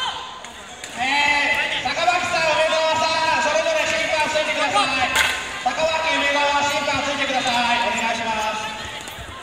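Young people shout loudly with long drawn-out cries.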